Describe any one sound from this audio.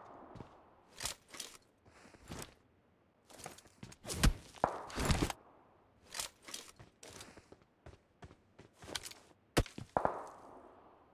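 A rifle fires in short, sharp bursts.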